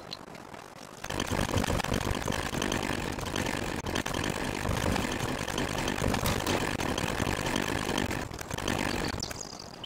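A chainsaw engine runs with a loud buzzing roar.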